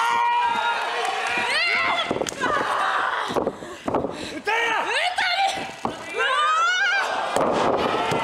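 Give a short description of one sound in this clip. A young woman shouts loudly.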